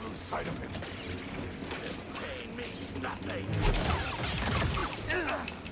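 Lightsabers hum and swing with sharp whooshes.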